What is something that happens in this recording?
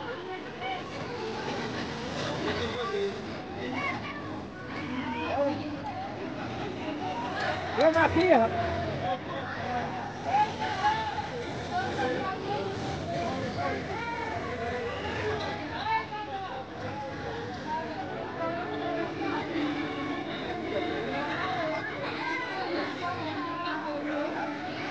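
A crowd of children and adults chatter nearby outdoors.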